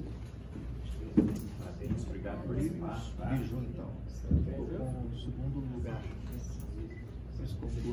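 A woman speaks briefly to the men.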